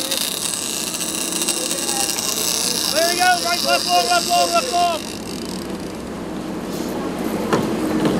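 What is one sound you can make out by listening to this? A fishing reel clicks.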